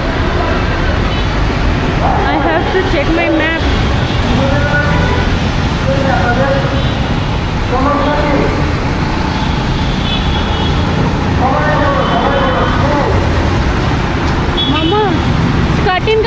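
Vehicle horns honk now and then.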